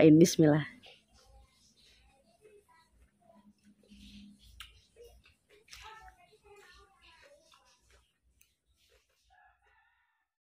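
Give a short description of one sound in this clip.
A woman chews crunchy food with soft crunching sounds.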